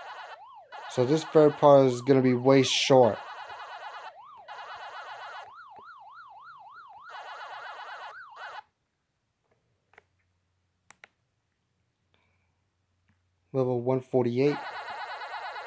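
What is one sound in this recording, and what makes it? Electronic game tones burst in a quick warbling jingle.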